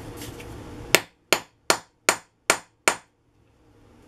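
A small hammer taps sharply on metal several times.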